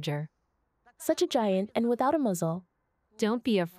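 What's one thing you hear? An elderly woman speaks with emotion close by.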